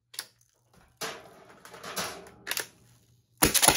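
A toy blaster's mechanism rattles and clicks as it is handled.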